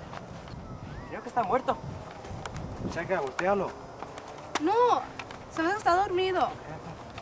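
Teenage boys talk with animation close by, outdoors.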